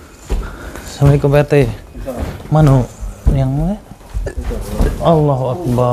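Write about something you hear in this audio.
A young man speaks with animation nearby.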